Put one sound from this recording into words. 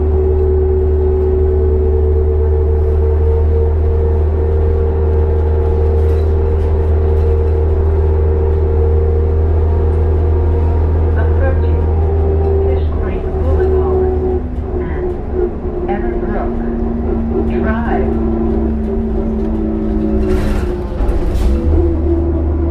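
A bus engine hums steadily and low from inside the cabin.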